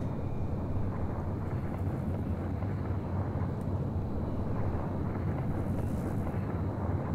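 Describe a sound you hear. A spacecraft's engines hum with a low, steady rumble.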